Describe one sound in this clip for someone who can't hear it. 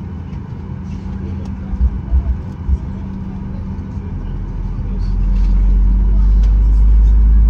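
A jet engine hums steadily close by.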